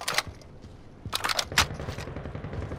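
A weapon clicks and clatters as it is handled.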